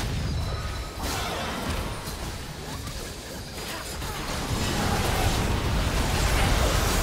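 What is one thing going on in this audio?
Game spells whoosh and crackle in a fast fight.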